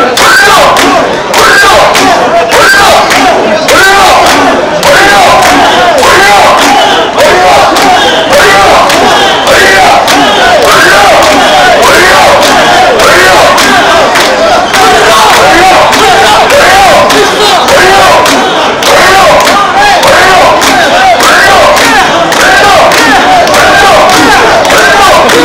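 Many hands clap in rhythm.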